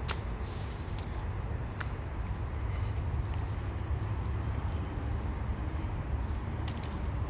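Footsteps fall on a paved path.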